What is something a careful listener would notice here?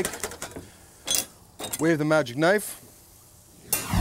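A metal lid clanks onto a pot.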